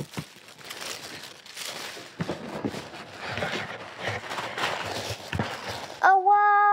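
Tissue paper rustles and crinkles as a box is opened.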